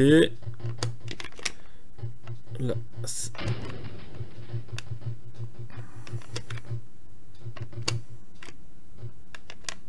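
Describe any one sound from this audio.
Short electronic beeps and clicks play from a retro video game.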